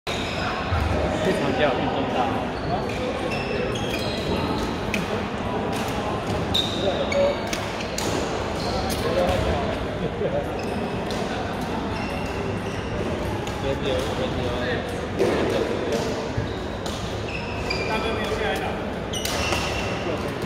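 Shoes squeak on the hall floor in high chirps.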